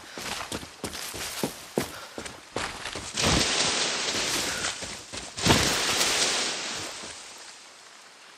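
Footsteps rustle and crunch through dense leaves and undergrowth.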